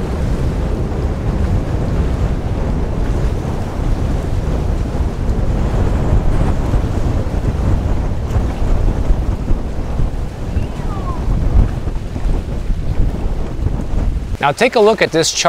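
Wind blows hard across an open microphone outdoors.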